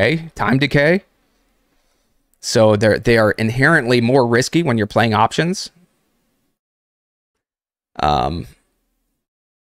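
A man talks with animation close to a microphone, in short bursts with pauses.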